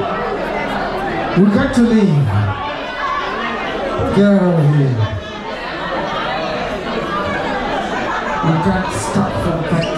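A crowd chatters in a busy, lively room.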